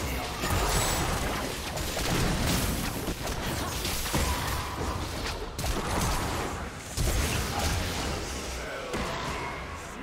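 Game characters' attacks clash with sharp hits.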